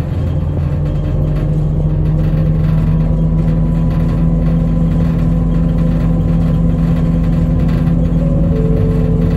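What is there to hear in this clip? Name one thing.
A vehicle's engine hums steadily from inside as it drives along.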